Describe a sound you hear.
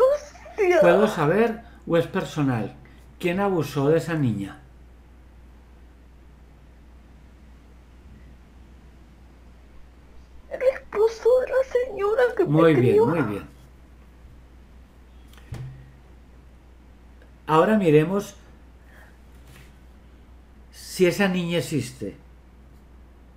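An elderly man speaks calmly over an online call, in short bursts with pauses.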